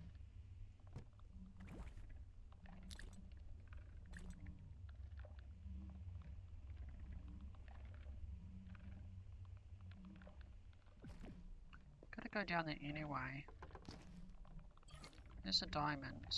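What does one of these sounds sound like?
Soft interface clicks sound as menus open and items are picked.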